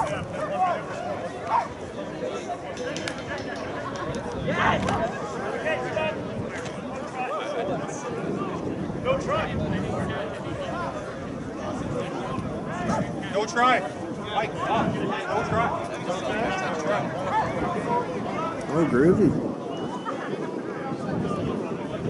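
Men and women shout and cheer from a distance outdoors.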